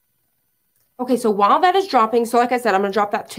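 A woman speaks with animation close to a microphone.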